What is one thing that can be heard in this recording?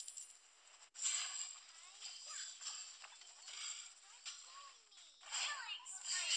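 Fighting sounds of magic blasts and hits clash rapidly.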